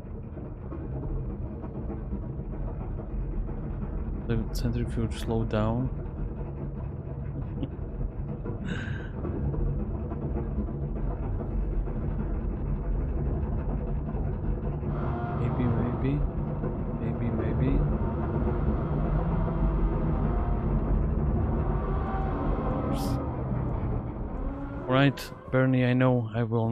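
A machine hums steadily with a low drone.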